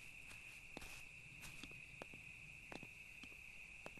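Footsteps tap lightly on hard ground.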